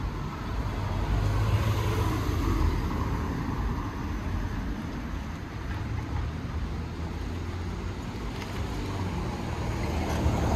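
A car drives slowly past on a street nearby.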